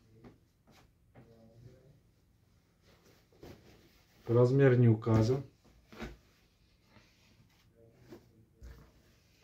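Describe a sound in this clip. Fabric rustles and swishes as clothes are handled and folded.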